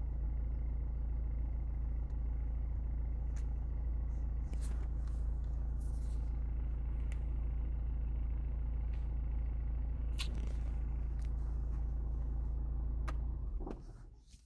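A car engine idles with a steady low rumble, then stops.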